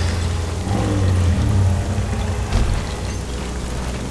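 A heavy body crashes to the ground with a thud.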